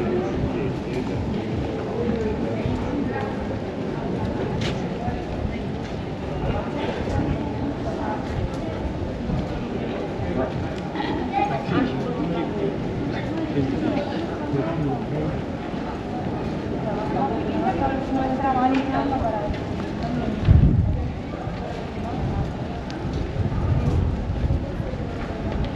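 Footsteps tap on paving stones.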